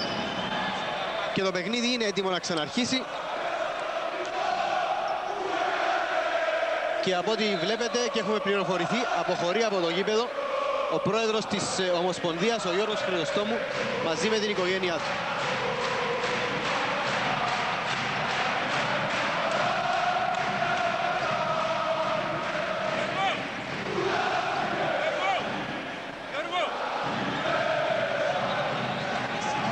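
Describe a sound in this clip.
A crowd chants and cheers loudly in a large echoing hall.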